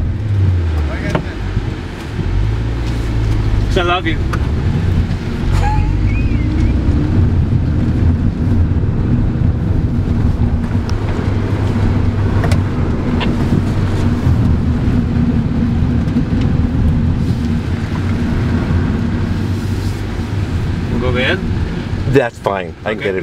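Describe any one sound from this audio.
A car engine rumbles steadily from inside the cabin.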